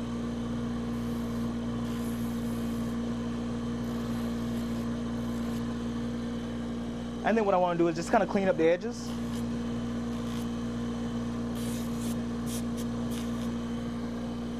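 A blade grinds against a spinning sanding belt in short rasping bursts.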